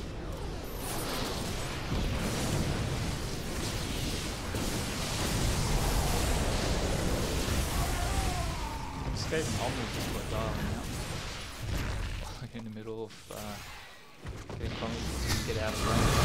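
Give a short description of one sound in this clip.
Game weapons fire and blasts crackle in a busy battle.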